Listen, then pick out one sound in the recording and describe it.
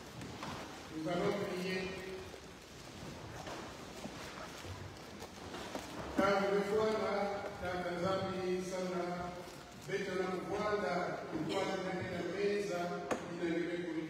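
A man chants in a steady, sung voice in a large echoing hall.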